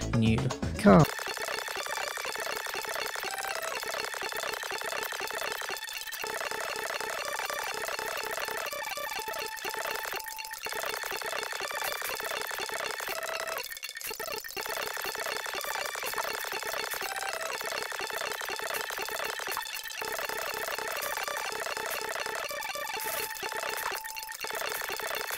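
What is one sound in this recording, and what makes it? Upbeat electronic game music plays steadily.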